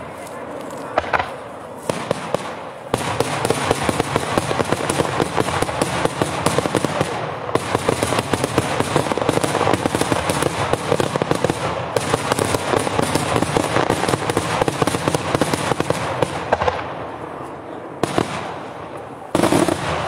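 Firework shells burst with loud bangs.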